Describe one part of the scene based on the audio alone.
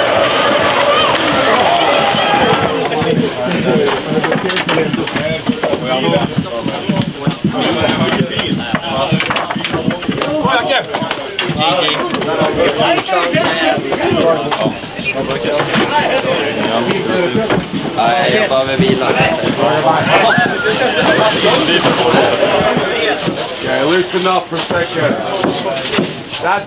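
Several men talk and cheer with excitement nearby.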